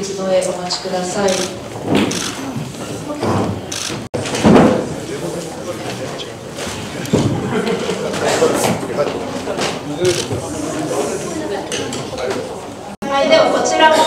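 A crowd applauds in a large room.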